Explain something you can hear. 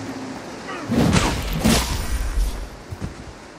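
A heavy blow lands with a deep thud.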